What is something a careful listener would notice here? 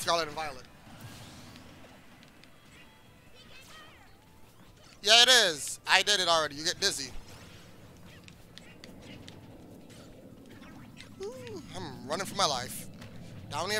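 Cartoon fighters let out high, squealing cries.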